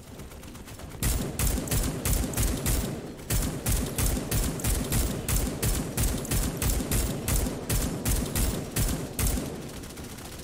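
A rifle fires rapid, regular shots in short bursts.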